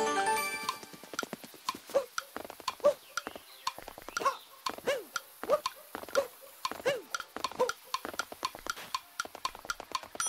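Quick light footsteps patter steadily in a video game.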